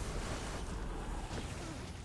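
Electric arcs crackle and zap.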